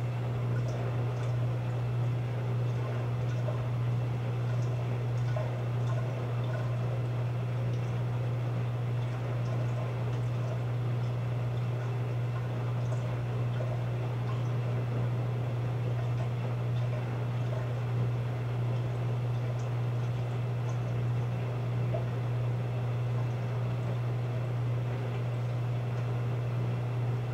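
Water splashes and sloshes inside a washing machine drum.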